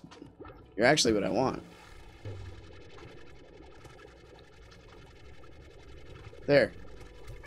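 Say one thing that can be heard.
A cartoonish creature lets out high, wobbly squeals.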